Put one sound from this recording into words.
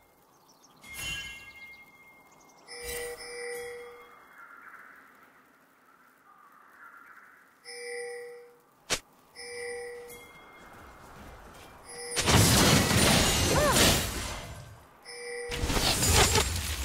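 Game chimes ring out in short tones.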